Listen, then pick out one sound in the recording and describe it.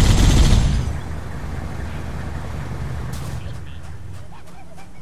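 A vehicle engine rumbles.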